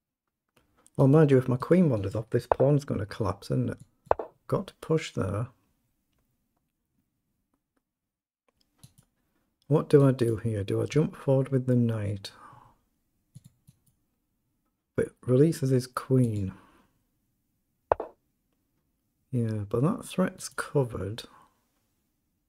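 An older man talks calmly into a close microphone, pausing between phrases.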